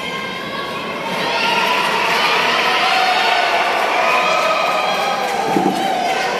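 A crowd of young women and men shout and cheer loudly in a large echoing hall.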